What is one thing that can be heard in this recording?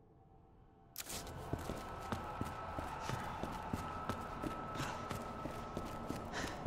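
Footsteps walk over a hard floor.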